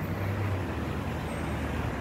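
A minibus drives past on the street.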